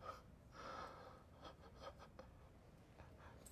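A young woman cries softly nearby.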